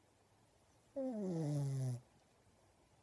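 A pug groans.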